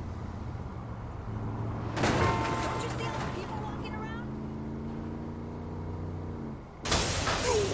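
A car engine revs and drives off.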